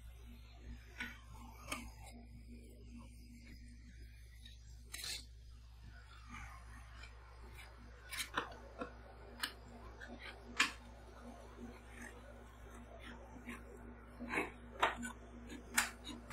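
Metal spatulas scrape and tap on a cold metal plate.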